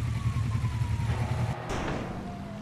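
A motorbike engine idles and revs close by.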